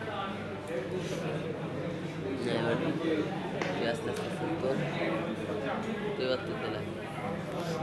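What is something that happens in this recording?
A young man talks close by with animation.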